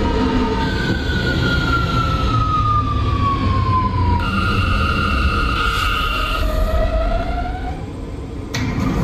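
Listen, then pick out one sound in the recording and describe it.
Subway train motors whine and fall in pitch as the train slows.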